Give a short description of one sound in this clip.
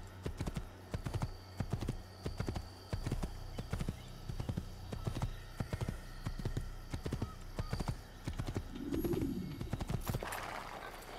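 A horse's hooves thud quickly and steadily on a dirt path.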